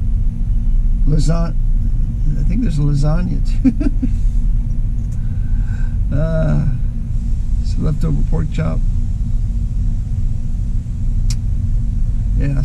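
An engine idles with a steady low rumble.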